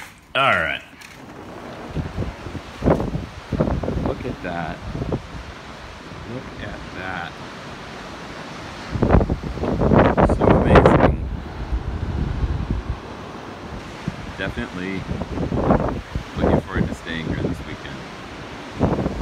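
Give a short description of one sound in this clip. Waves crash and wash over rocks nearby.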